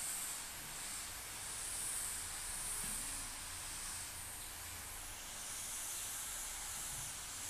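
A spray can hisses in steady bursts.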